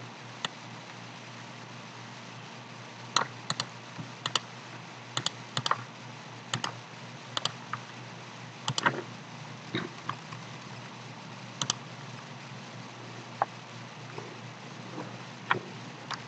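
A computer mouse clicks sharply, many times.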